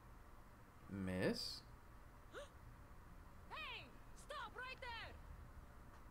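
A young woman speaks sharply.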